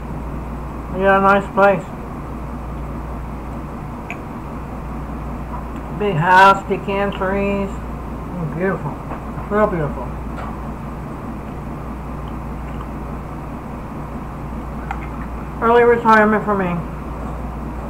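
A middle-aged woman speaks briefly and calmly, close by.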